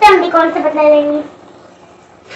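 A young boy speaks nearby.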